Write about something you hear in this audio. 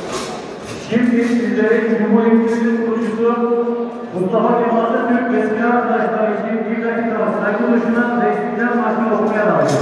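A crowd sings together loudly in a large echoing hall.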